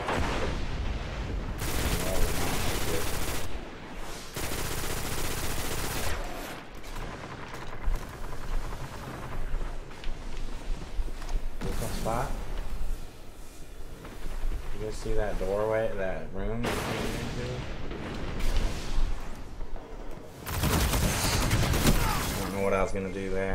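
Gunfire rattles in bursts.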